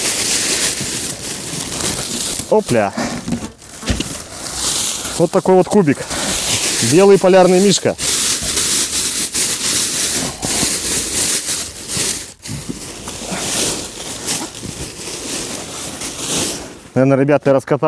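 Plastic film rustles and crinkles loudly.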